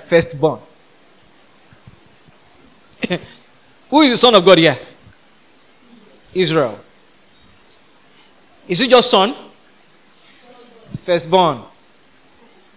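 A young man preaches with animation into a microphone, in short emphatic bursts with pauses between.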